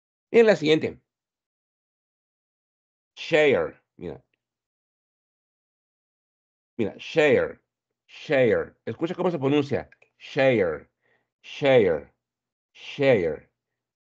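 A man speaks slowly in short phrases over an online call.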